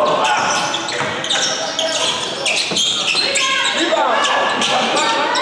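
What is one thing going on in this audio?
Young men shout to each other in a large echoing gym.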